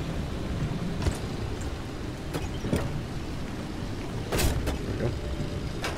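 A fuel nozzle clicks and clanks.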